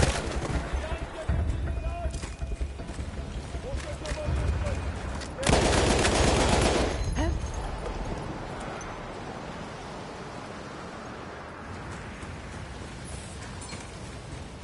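Wind howls across open ground.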